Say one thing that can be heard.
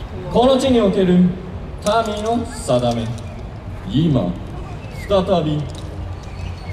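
Young dancers shout short calls together, loud and outdoors.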